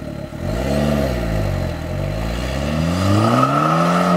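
A turbocharged four-cylinder hatchback with a sport exhaust pulls away and accelerates down the road.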